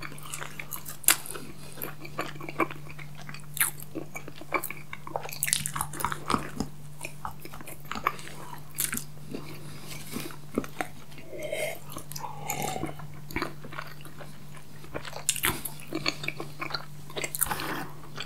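Wet lips smack close to a microphone.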